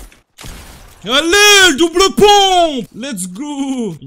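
A young man exclaims loudly and with animation close to a microphone.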